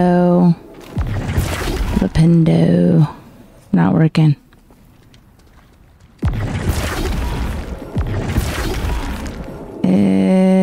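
A spell bursts with a whooshing sound.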